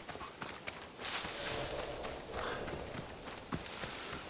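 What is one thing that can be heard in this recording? Leaves and brush rustle as something pushes through a thicket.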